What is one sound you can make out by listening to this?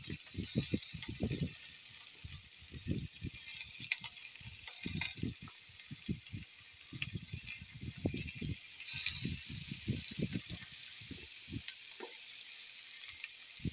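Meat sizzles and crackles in a hot frying pan.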